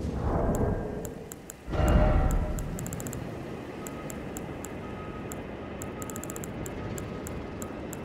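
Short menu clicks tick in quick runs.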